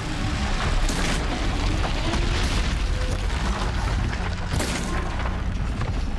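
Electric blasts crackle and boom in bursts.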